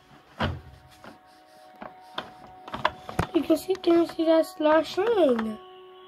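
A plastic drawer slides open with a clatter.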